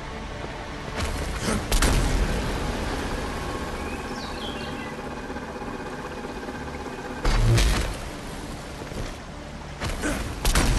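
Magical blasts burst with loud whooshing booms.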